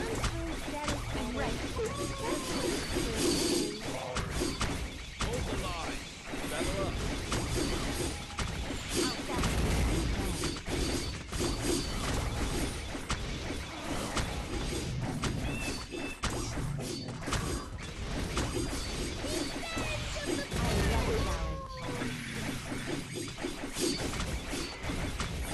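Game battle sounds of clashing, blasts and zaps come thick and fast.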